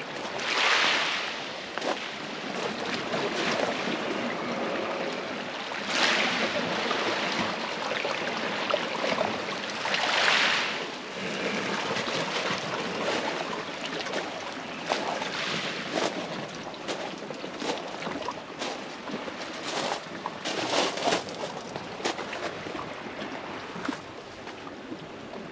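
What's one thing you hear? Gentle waves lap and wash against rocks and pebbles close by.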